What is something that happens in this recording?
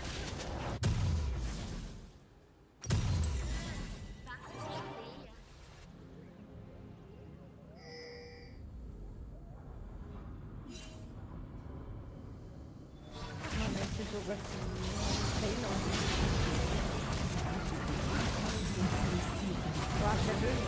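A young woman talks into a microphone close by.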